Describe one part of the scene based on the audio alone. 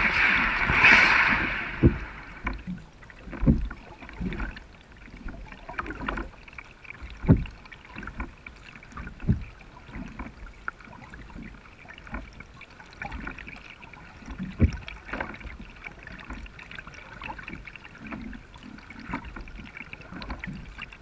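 A kayak paddle dips and splashes in calm water.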